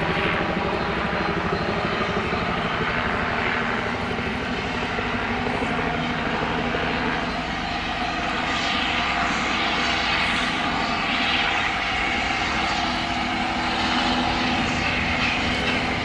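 A steam locomotive chuffs steadily in the distance.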